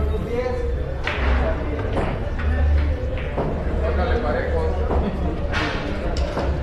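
Billiard balls click together sharply.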